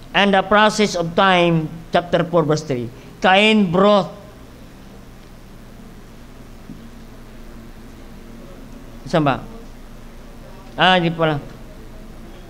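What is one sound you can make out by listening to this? A middle-aged man reads aloud calmly into a microphone, with pauses.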